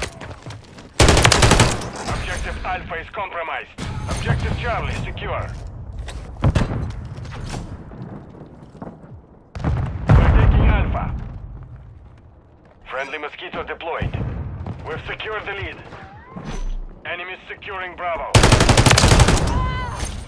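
A rifle fires loud single shots that ring out.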